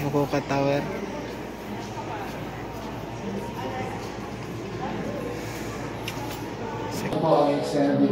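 Crowd chatter murmurs in a busy echoing hall.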